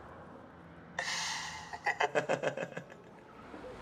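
A young man laughs heartily.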